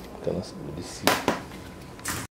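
A small metal torch knocks against a table.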